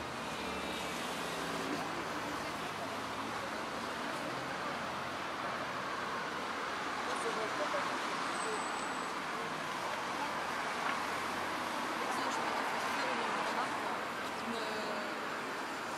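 A crowd of young men and women chatter nearby outdoors.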